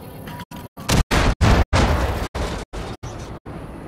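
A loud explosion booms nearby and rumbles away.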